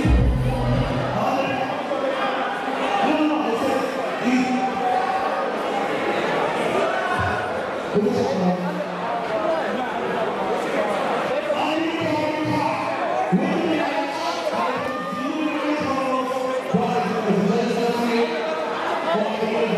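A large crowd chatters and cheers.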